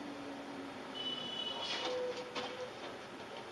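A motorbike crashes and skids across the road.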